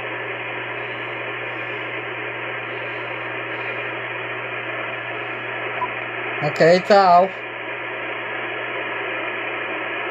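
A radio loudspeaker hisses with steady static.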